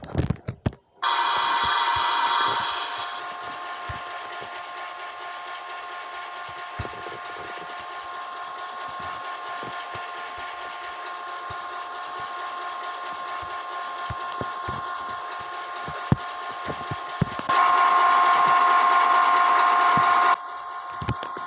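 A diesel locomotive engine hums steadily at idle.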